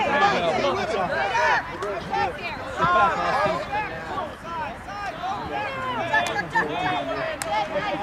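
Many voices of children and adults shout and call out across an open field.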